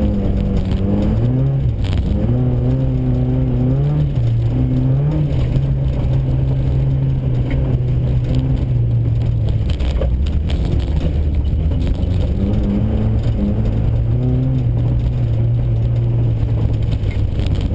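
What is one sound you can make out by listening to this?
Tyres crunch and hiss over packed snow and ice.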